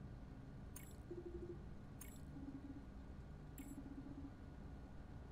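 Short electronic blips chirp in quick bursts.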